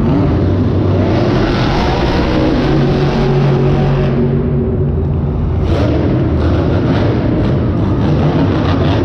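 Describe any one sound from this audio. A large crowd cheers and murmurs.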